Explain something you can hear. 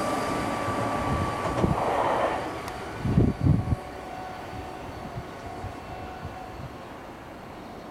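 An electric express train rolls away along the track and fades.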